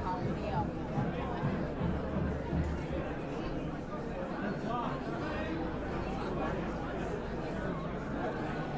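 A rock band plays loudly with electric guitars and bass.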